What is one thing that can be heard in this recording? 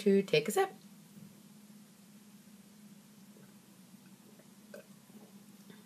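A woman gulps a drink.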